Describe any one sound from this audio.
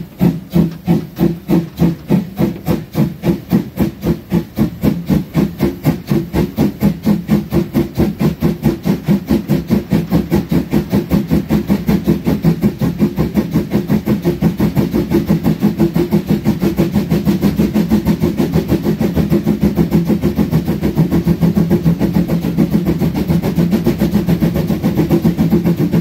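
A steam locomotive chuffs rhythmically, with puffs coming faster as the engine picks up speed.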